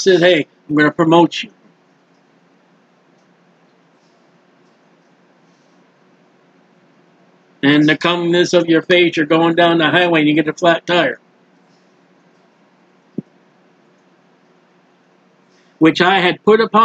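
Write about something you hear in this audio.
A man speaks calmly and closely into a microphone, pausing between phrases.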